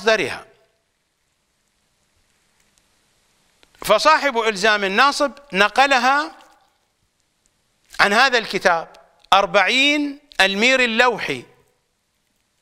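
An elderly man speaks slowly and earnestly into a close microphone, with long pauses.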